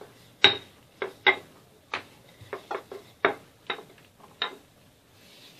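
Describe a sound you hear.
A wooden rolling pin knocks and taps against a hard counter.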